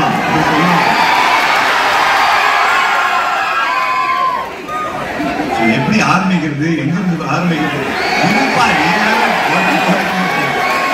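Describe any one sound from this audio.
A large crowd cheers and screams in an echoing hall.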